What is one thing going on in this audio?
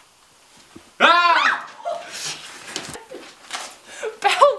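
A young woman shouts with excitement close by.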